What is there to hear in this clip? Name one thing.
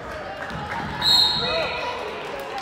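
A referee blows a short, shrill whistle.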